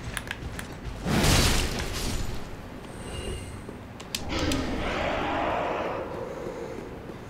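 A sword swings and strikes with a heavy whoosh.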